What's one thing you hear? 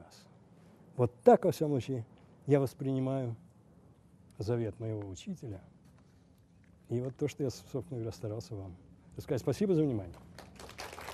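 An older man speaks with emphasis through a microphone in a large hall.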